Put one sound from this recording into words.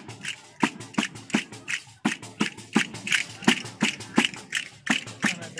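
A group of people clap their hands in a quick, steady rhythm outdoors.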